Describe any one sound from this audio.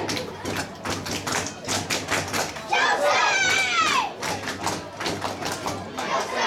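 A crowd of spectators claps outdoors.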